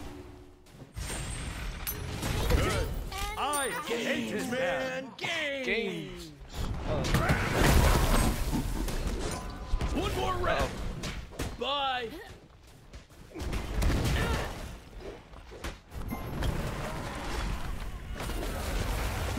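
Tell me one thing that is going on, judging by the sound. Combat sound effects clash, crackle and burst.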